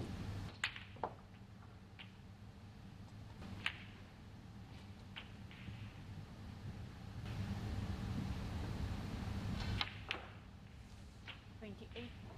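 Snooker balls clack together.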